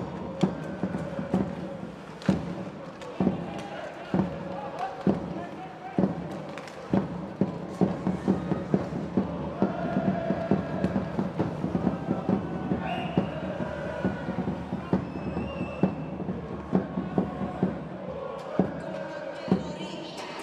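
A sparse crowd murmurs and calls out in a large echoing arena.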